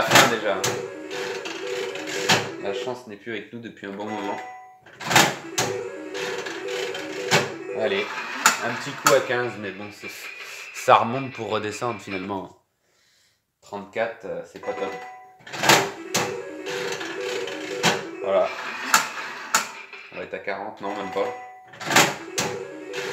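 A slot machine lever clunks as it is pulled.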